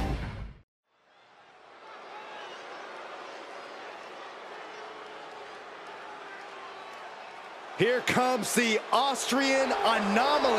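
A large arena crowd roars and cheers.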